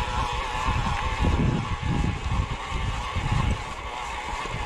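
Wind buffets loudly in gusts outdoors.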